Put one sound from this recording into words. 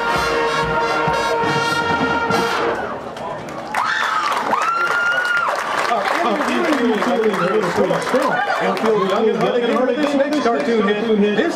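A marching band plays loud brass music outdoors.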